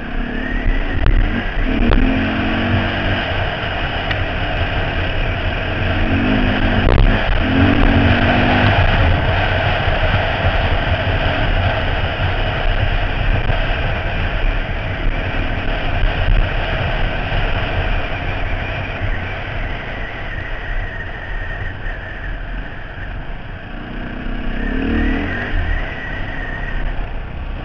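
Tyres crunch over a gravel track.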